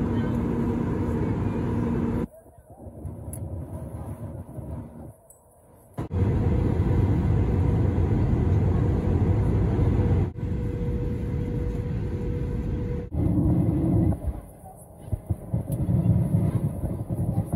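A jet engine roars steadily in flight.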